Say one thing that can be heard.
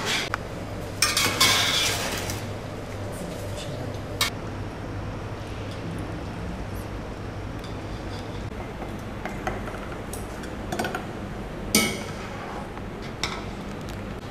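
A metal ladle scrapes and clinks against a steel pot.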